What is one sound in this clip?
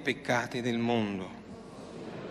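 A man chants through a microphone in an echoing hall.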